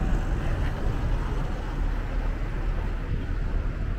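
A small pickup truck drives past close by.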